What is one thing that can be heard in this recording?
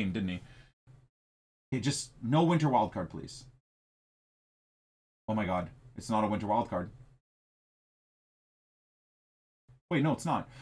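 A man talks with animation into a microphone, in short bursts with pauses.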